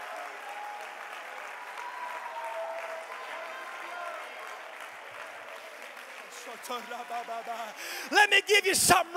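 A large crowd sings and cheers in a big echoing hall.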